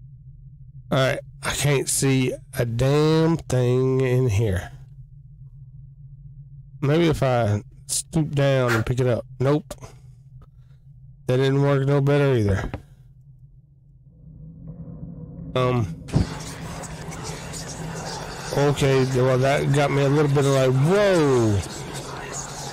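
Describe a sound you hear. A man talks with animation, close into a microphone.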